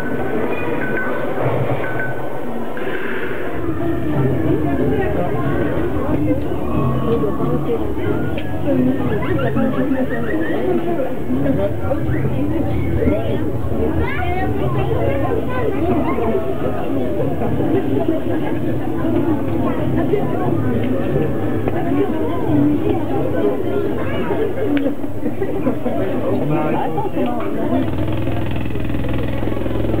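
A crowd of adults and children chatters all around, close by.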